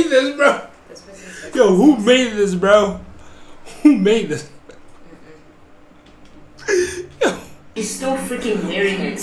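A young man laughs and talks with animation close to a microphone.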